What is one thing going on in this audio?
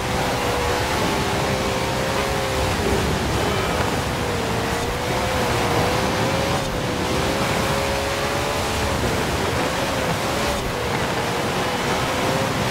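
A racing car engine roars at high revs, rising and dropping in pitch as it shifts and brakes.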